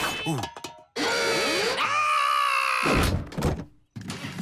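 A cartoonish male voice giggles and talks giddily.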